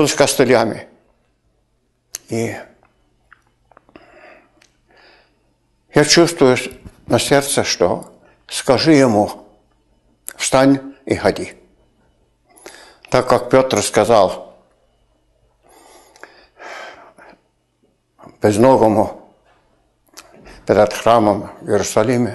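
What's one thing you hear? An older man speaks with animation into a handheld microphone, pausing often.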